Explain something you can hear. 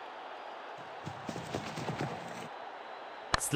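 A cricket bat strikes a ball with a knock.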